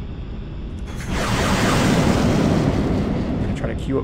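An explosion bursts with a loud, rumbling boom.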